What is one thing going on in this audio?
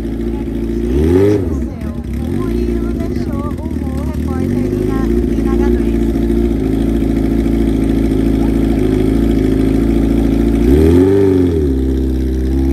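A motorcycle engine revs up sharply twice and falls back.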